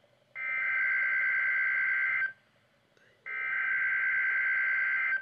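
A weather alert radio sounds a loud, steady alarm tone through its small speaker, stopping briefly and starting again.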